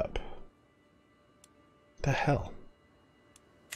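A man speaks briefly and casually, close to a microphone.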